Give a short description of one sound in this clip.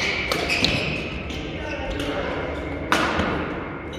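A badminton racket strikes a shuttlecock with sharp pops in an echoing hall.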